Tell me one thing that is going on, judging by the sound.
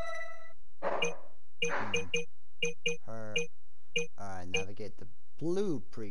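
Short electronic blips chime as a game menu selection moves.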